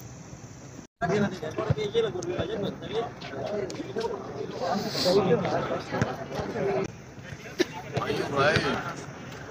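A group of young men talk over one another nearby.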